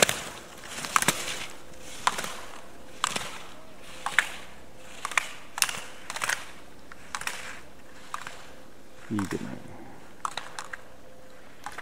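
Slalom poles clack as a skier knocks them aside.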